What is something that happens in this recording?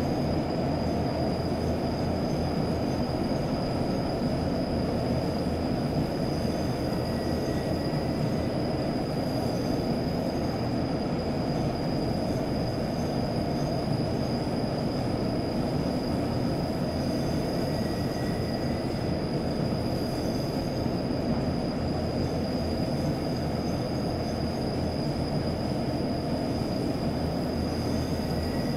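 A train engine rumbles steadily.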